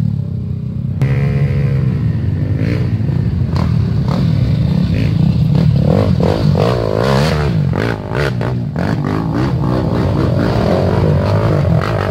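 Several dirt bike engines rev loudly as they come close.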